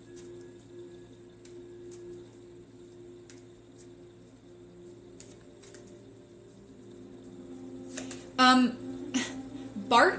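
Playing cards riffle and tap as they are shuffled.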